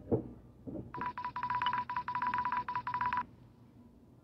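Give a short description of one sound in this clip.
A young boy speaks in a high, beeping voice.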